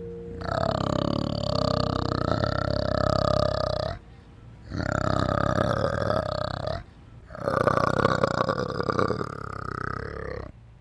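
An orangutan makes long, loud, drawn-out calls in three bursts.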